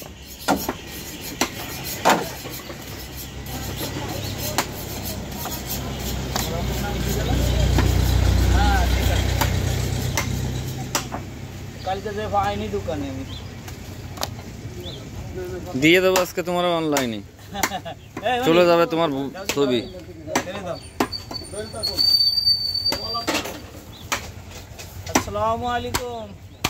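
A cleaver chops sharply into a wooden block.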